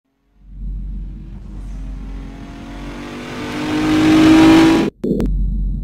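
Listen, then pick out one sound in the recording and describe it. A car engine hums and rises in pitch as it speeds up.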